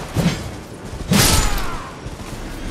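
A sword swings and strikes with a sharp hit.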